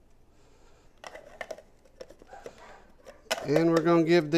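A plastic lid clicks and clatters onto a small food chopper.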